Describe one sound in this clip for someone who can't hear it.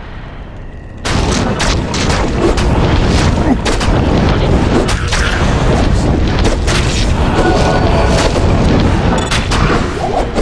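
Weapons clash and strike in rapid hits.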